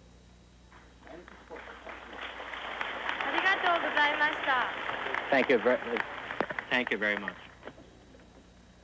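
A large crowd applauds and cheers in an echoing hall.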